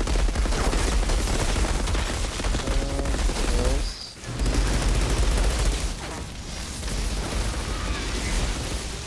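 Gunfire rattles rapidly in a game battle.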